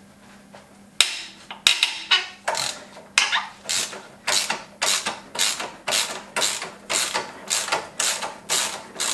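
A ratchet wrench clicks rapidly in quick, even strokes.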